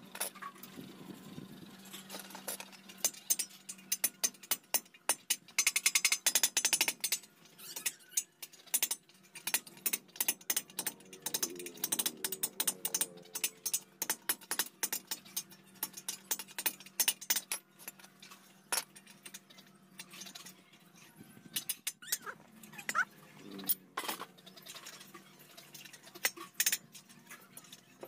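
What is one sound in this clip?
Metal tools clink and scrape against each other and a tiled floor.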